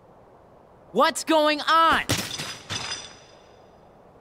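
A metal blade clatters and rings on hard ground.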